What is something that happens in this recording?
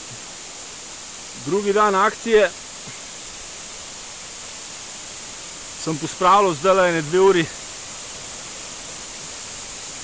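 A shallow stream trickles softly over stones.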